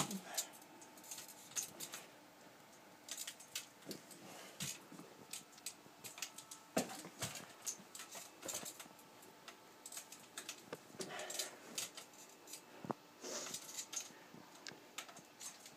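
Metal crutches knock and click against the floor with slow, halting steps.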